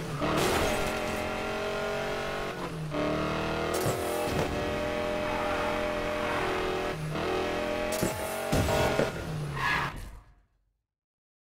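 A car engine roars and revs as it speeds along.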